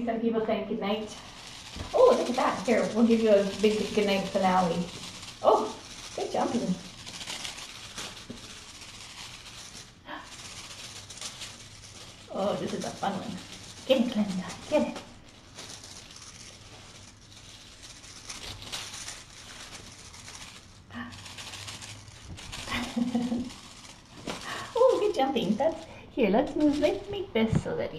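Small kittens scamper and pounce on a hard floor.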